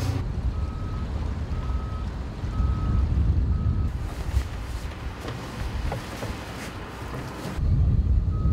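Wind blows steadily across open water outdoors.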